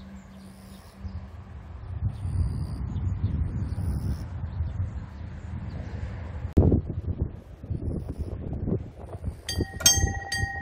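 Wind rumbles across an open outdoor space.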